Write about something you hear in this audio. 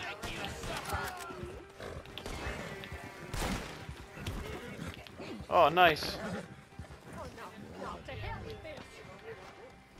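A horse gallops over dry ground with thudding hoofbeats.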